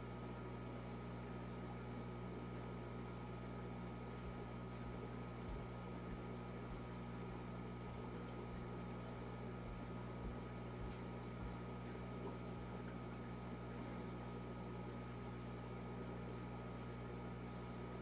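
Water bubbles and trickles gently from a filter.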